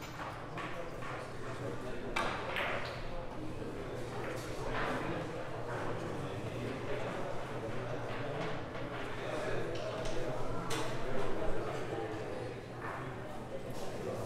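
Men talk quietly in the background.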